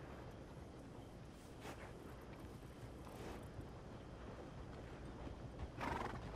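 A horse shifts its hooves on a dirt road.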